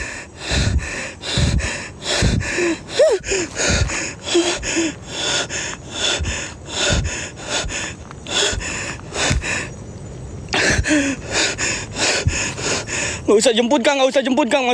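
Footsteps crunch slowly on a dirt forest trail.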